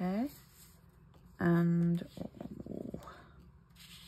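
A plastic stencil rustles as it is lifted.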